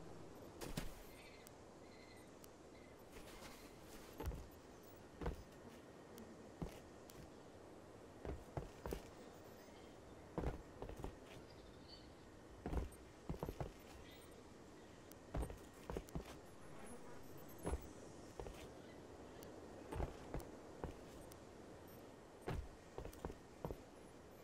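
Heavy footsteps thud on rocky ground at an uneven pace.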